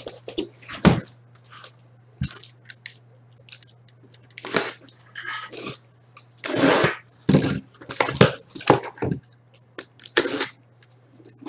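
Hands slide and tap on cardboard boxes.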